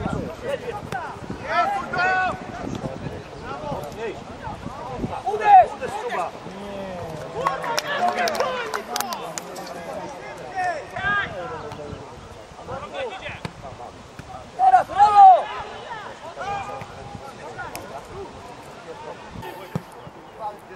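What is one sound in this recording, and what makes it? Football players shout to each other across an open pitch outdoors.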